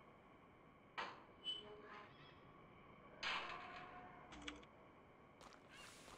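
A video game's sound effects play in short bursts.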